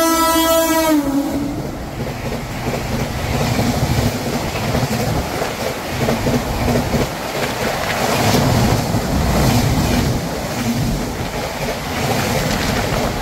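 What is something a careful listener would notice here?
A passenger train rushes past close by with a loud roar and rattle of wheels.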